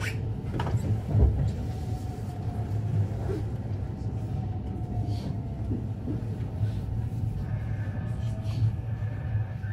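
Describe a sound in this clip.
A train rumbles steadily as it moves slowly along the tracks.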